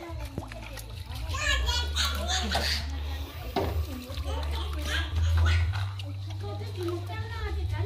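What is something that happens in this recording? Hands stir and swish water in a metal basin.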